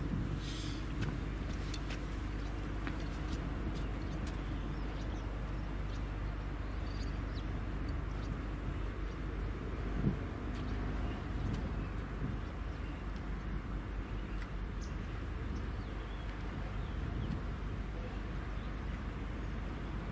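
Wind blows steadily outdoors.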